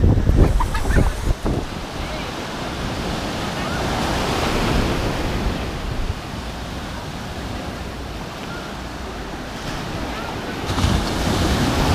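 Waves crash and wash up onto the shore.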